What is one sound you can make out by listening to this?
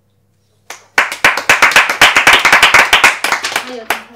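A group of women clap their hands in applause.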